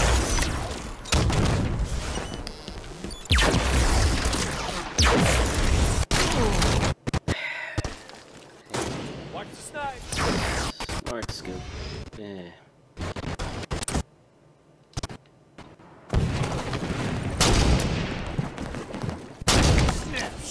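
Gunfire rings out in loud, rapid bursts.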